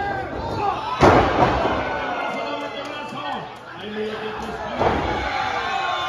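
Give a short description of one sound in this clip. A wrestler's body slams hard onto a ring mat.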